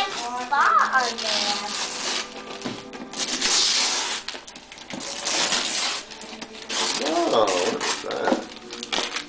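Wrapping paper rustles and tears as a child unwraps a present.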